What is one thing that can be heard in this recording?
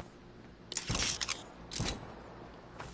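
Gunshots crack in short, sharp bursts.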